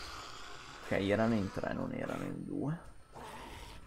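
A zombie growls and snarls up close.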